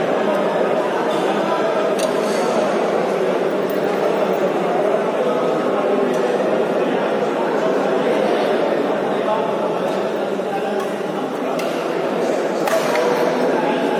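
A crowd chatters steadily in a large echoing hall.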